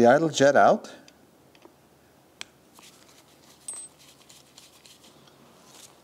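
A screwdriver scrapes and clicks against a small metal part.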